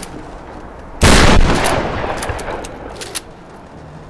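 A loud crumbling blast bursts out and rumbles away.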